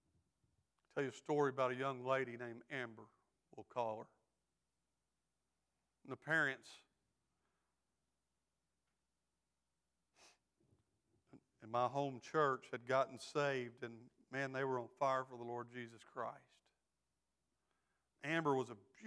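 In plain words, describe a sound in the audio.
A middle-aged man speaks slowly and earnestly through a microphone, with pauses.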